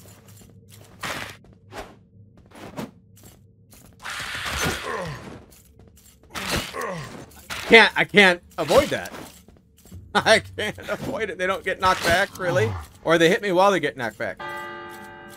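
Blades slash and strike in a fast fight, with sharp hits.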